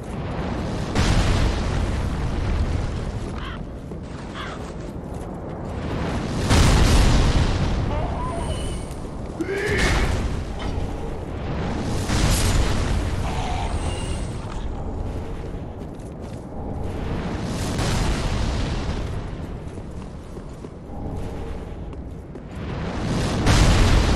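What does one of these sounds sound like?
A sword swishes through the air in quick swings.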